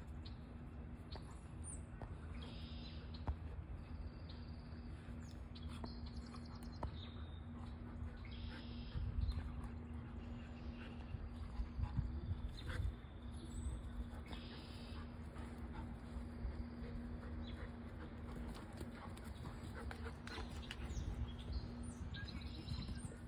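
Dog paws scuffle on grass.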